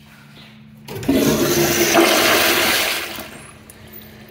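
A toilet flushes with a loud rush of water.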